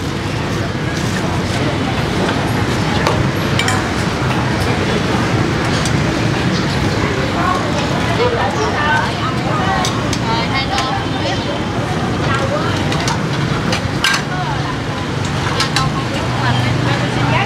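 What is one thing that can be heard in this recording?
Dishes and utensils clink.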